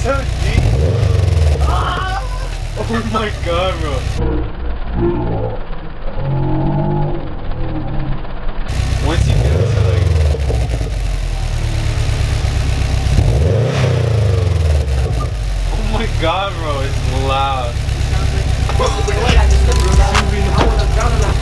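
A car engine idles with a deep, rumbling exhaust and revs up now and then.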